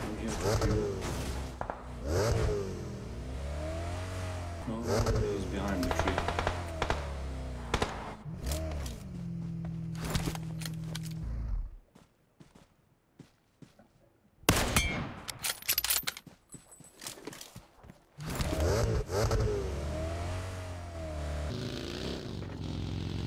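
A sports car engine revs.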